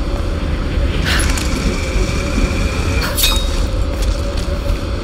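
A rope hums with something sliding fast along it.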